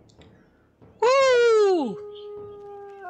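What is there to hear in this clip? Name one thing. A goat cries out loudly in distress.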